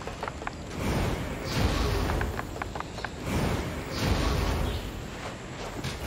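Heavy footsteps thud across a wooden bridge.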